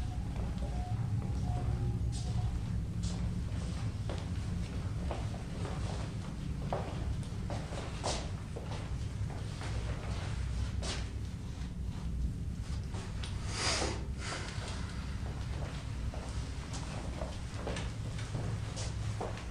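Footsteps tread across a wooden floor.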